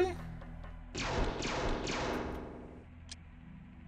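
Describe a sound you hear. A man speaks casually, close to a microphone.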